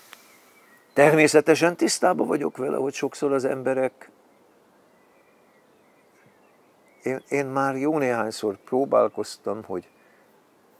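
An elderly man speaks calmly, close by.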